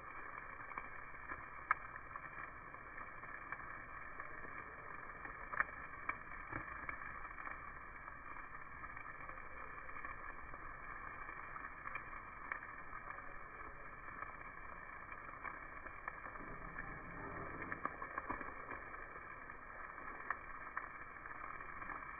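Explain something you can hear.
Meat sizzles and crackles on a hot grill.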